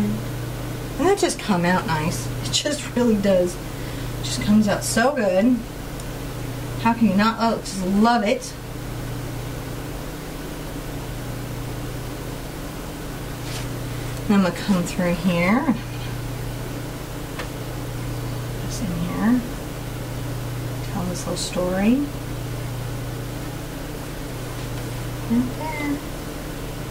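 A middle-aged woman talks calmly into a nearby microphone, in bursts with pauses.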